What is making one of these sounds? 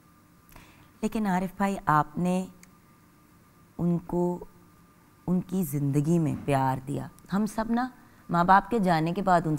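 A middle-aged woman speaks calmly and steadily, close by.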